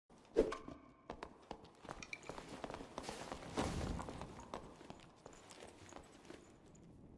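Sword blows and clashing hits ring out in a fight.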